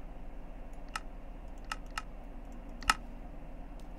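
Menu buttons click several times.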